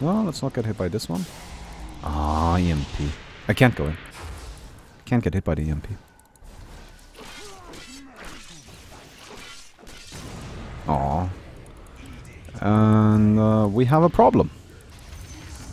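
Magic spells crackle and zap in a game battle.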